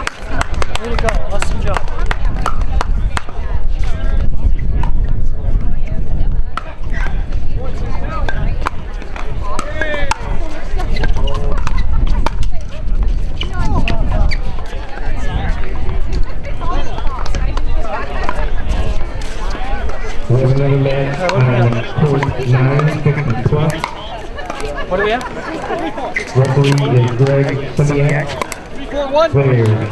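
Paddles knock a plastic ball back and forth in sharp pops.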